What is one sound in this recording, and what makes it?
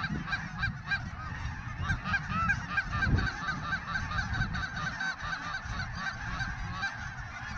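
A flock of geese honks busily nearby.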